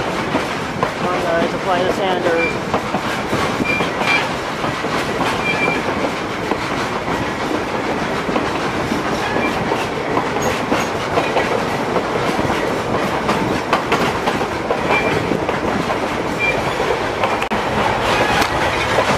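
Wind rushes past an open train car.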